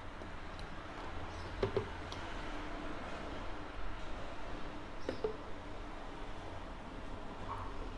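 A thick smoothie pours gently into a glass.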